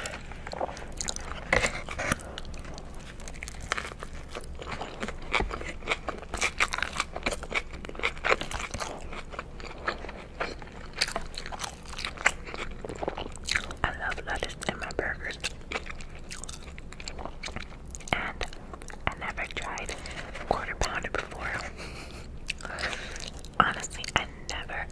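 A young woman chews food loudly and wetly, close to a microphone.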